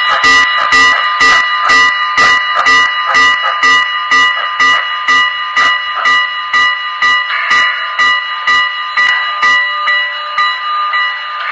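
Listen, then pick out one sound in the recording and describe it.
An HO scale model steam locomotive's sound unit chuffs, slowing to a stop.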